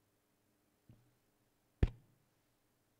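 A microphone bumps with a sharp thud.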